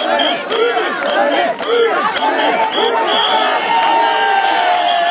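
A young man shouts excitedly over the crowd.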